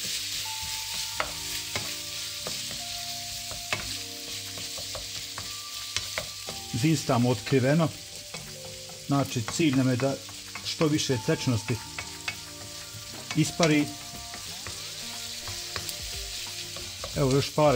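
A wooden spoon scrapes and stirs food in a frying pan.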